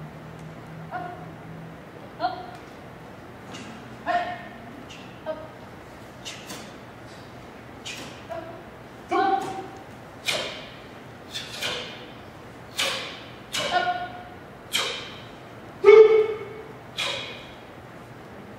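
A young boy gives short, sharp shouts that echo in a large hall.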